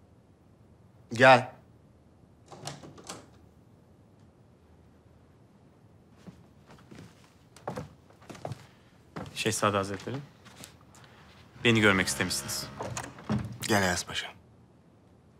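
A man calls out firmly, close by.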